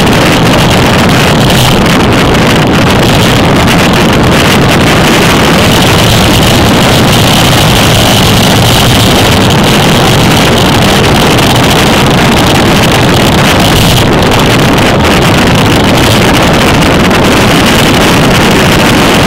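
Strong wind roars loudly across a microphone on a moving bicycle.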